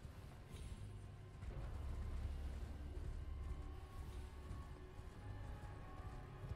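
Horse hooves thud steadily on soft ground at a gallop.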